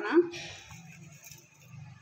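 Leaves rustle as a hand presses them into a metal jar.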